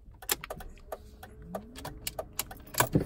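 A car engine cranks and starts.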